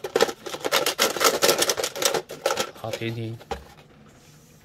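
A plastic case crackles and rattles as hands handle it.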